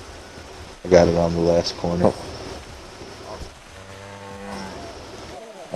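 A cow moos loudly.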